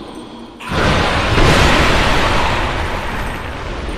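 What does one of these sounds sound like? Clay pots shatter with a loud crash.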